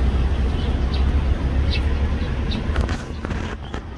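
An oriental magpie-robin chirps.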